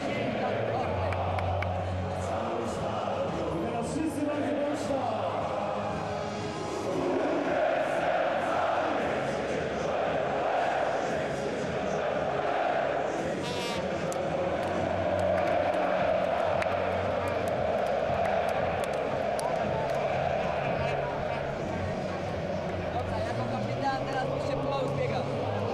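A large stadium crowd roars and chants steadily, outdoors in a wide open space.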